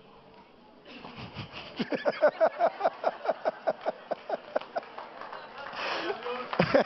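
A middle-aged man laughs heartily into a microphone.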